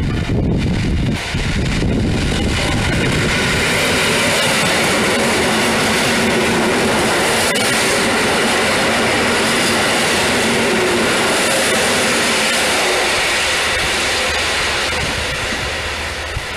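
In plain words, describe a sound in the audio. An electric train rushes past close by with a loud rumble and rattle.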